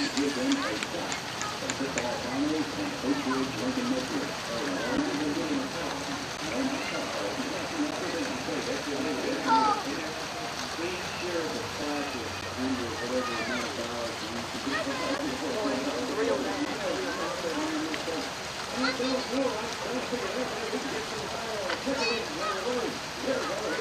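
Children talk and call out nearby, outdoors.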